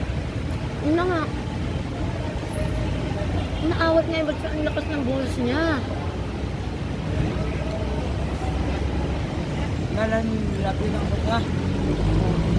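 A young woman talks close by, casually.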